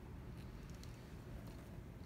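A paper towel presses and rubs on paper.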